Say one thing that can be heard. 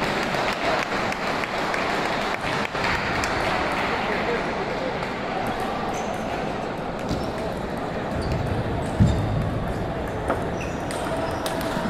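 Many people chatter in a large echoing hall.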